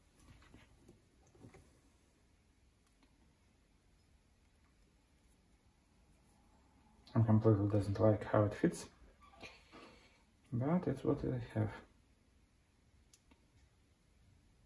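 Metal parts clink and scrape softly as they are fitted together.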